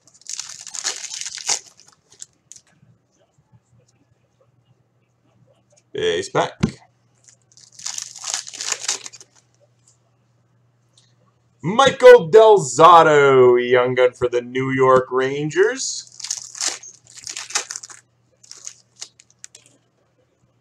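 A plastic wrapper crinkles and rustles in short bursts as it is torn open.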